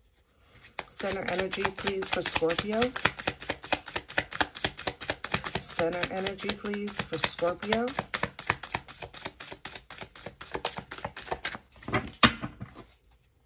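Playing cards riffle and flutter rapidly as they are shuffled by hand.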